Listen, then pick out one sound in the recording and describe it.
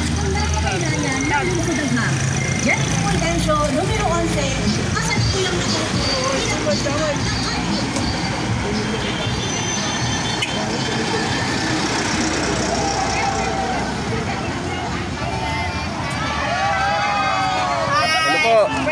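Cars and vans drive past close by on a road.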